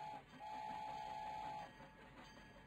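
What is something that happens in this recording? A train whistle blows steadily.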